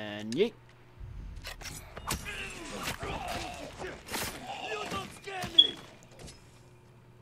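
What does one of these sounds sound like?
A blade stabs into a body with muffled thuds.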